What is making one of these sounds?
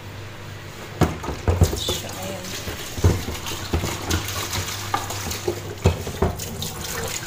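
A plastic board knocks against a metal sink.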